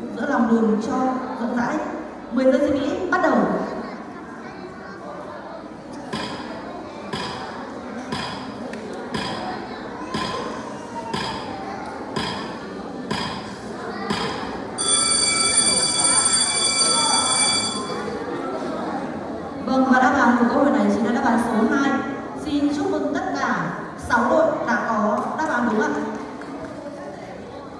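A woman speaks with animation through a microphone and loudspeakers in a large echoing hall.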